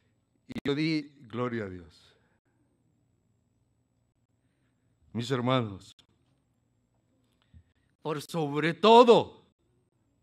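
An older man preaches with emphasis into a microphone, in short bursts with long pauses.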